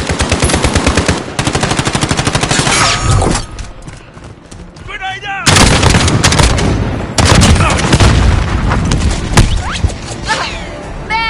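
Rapid automatic gunfire rattles in quick bursts.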